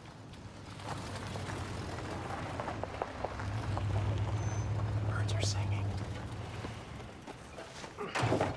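A car engine rumbles as a car pulls up and stops.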